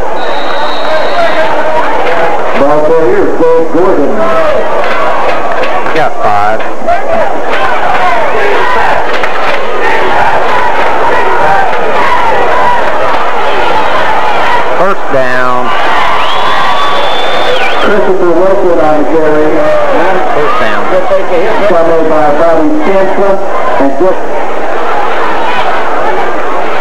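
A crowd cheers and shouts from stands outdoors.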